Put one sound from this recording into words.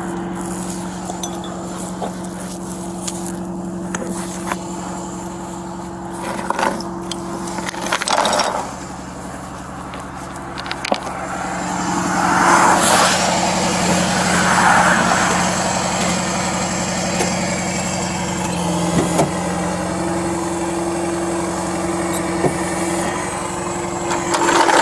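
A vehicle engine idles with a steady low hum.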